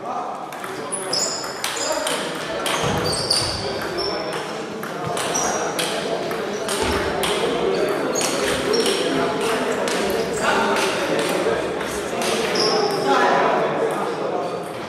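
Sneakers squeak on the hall floor.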